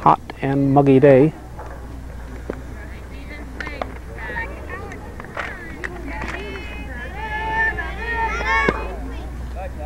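Children shout and call out nearby in an open field.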